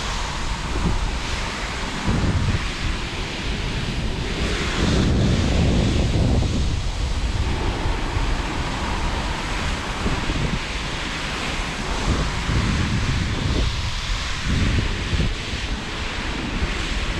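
Skis hiss and scrape over snow.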